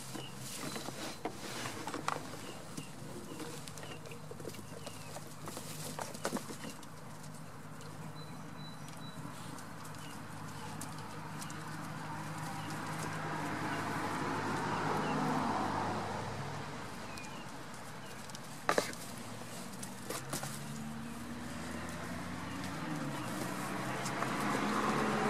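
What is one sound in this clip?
Young goats' hooves clatter and thump on wooden boards.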